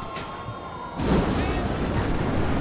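A car exhaust pops and bangs loudly.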